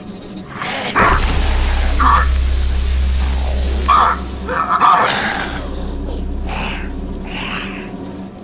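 A deep rumble booms and then fades away.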